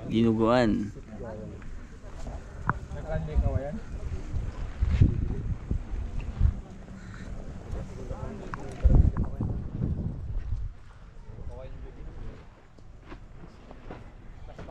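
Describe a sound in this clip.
Men talk casually outdoors, close by and farther off.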